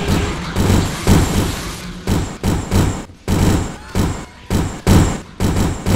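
A laser gun fires in bursts.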